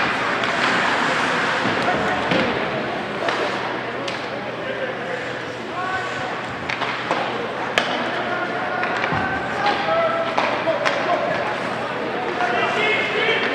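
Spectators chatter and call out in the stands.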